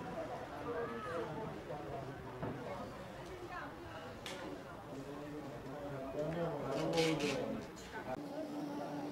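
A crowd of adults chatters outdoors.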